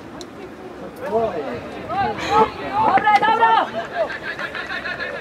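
Spectators nearby talk and call out.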